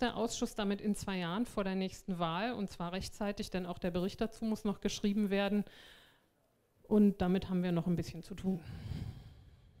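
A woman speaks calmly into a microphone.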